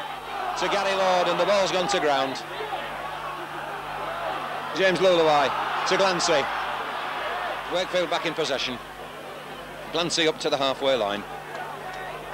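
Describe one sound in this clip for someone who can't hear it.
A large crowd cheers and roars in bursts outdoors.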